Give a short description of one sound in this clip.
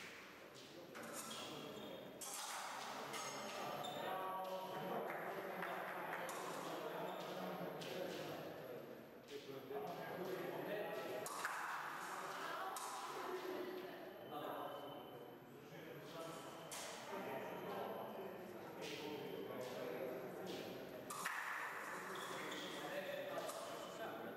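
Fencers' feet thump and squeak on the floor.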